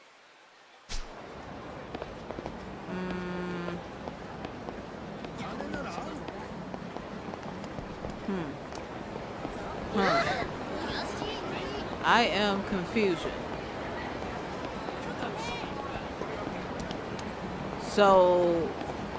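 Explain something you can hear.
A crowd murmurs and chatters on a busy street.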